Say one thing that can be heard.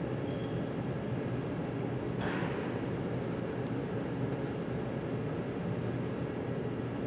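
Bare feet thud and shuffle softly on a padded mat.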